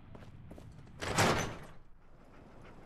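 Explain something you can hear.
A heavy metal door swings open with a loud scrape.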